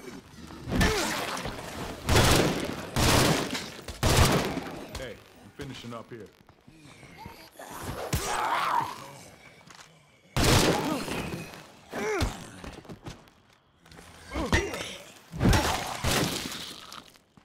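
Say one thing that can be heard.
Heavy blows thud and crack as a weapon strikes bodies again and again.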